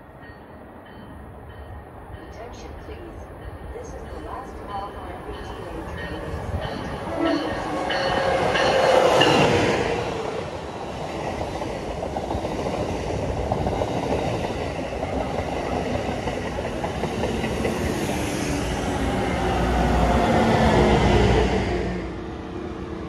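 A high-speed train approaches and rushes past close by with a loud roar.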